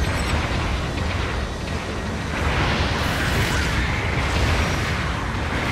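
Mechs fire beam weapons in rapid bursts.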